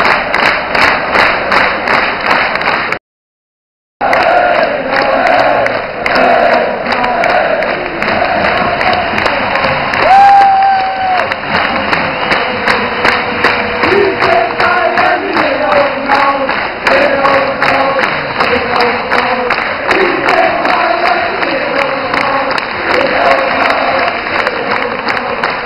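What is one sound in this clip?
A large crowd chants loudly, echoing across an open-air stadium.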